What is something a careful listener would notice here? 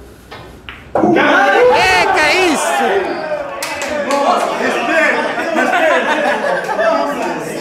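Men shout and cheer loudly nearby.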